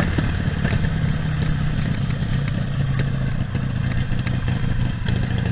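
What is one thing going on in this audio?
A Harley-Davidson Sportster V-twin motorcycle cruises along a road.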